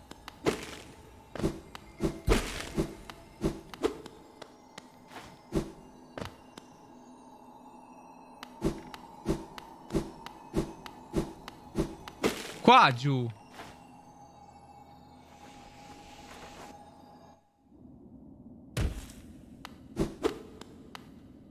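Short sharp taps and thuds of video game sound effects come again and again.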